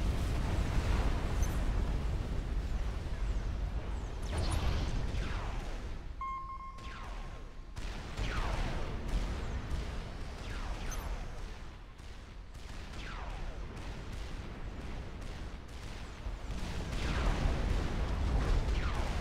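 Explosions and weapon fire rumble steadily in a large battle.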